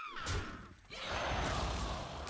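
A magical spell whooshes and shimmers.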